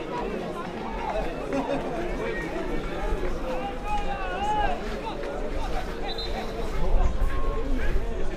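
Football players shout to each other across the pitch.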